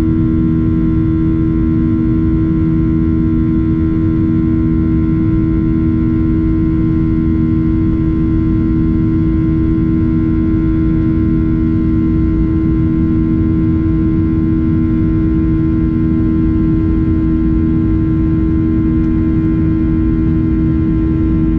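Air rushes past the plane with a steady rumble.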